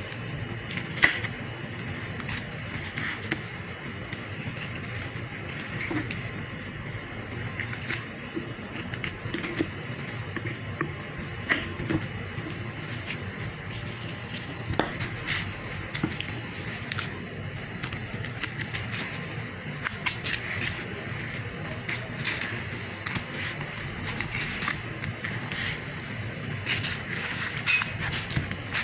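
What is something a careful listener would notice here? A knife taps and knocks on a wooden board.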